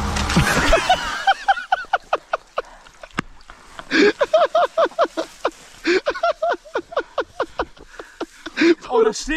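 A young man laughs hard into a close microphone.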